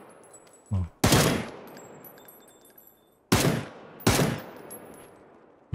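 Gunshots ring out one at a time, with a booming echo after each.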